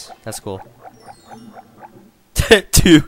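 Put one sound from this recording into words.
A bright, bouncy game jingle plays in quick rising notes.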